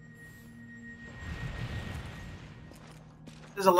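A beam of energy blasts with a loud roaring rush.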